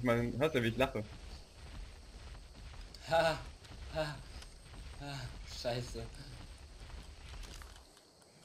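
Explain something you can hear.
Heavy footsteps thud steadily on grass.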